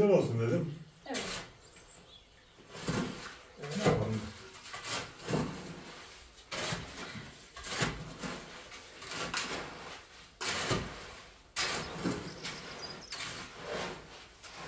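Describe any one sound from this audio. A shovel scrapes and scoops through sand and cement.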